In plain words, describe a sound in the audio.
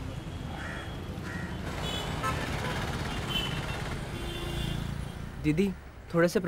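Street traffic rumbles past with a motor scooter engine.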